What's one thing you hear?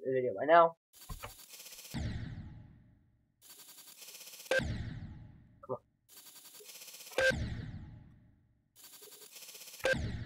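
Upbeat electronic game music plays with a fast, steady beat and keeps cutting off and starting over.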